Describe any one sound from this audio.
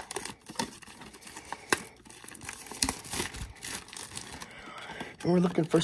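Plastic wrapping crinkles and rustles in someone's hands.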